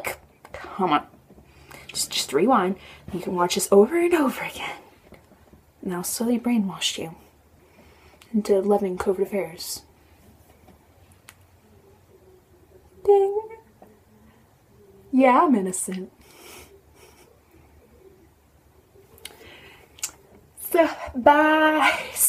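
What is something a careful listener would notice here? A young woman talks casually and close to a microphone, with pauses.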